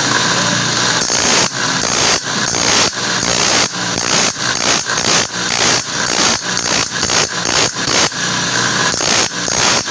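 A saw blade grinds against a spinning wheel in short rasping bursts.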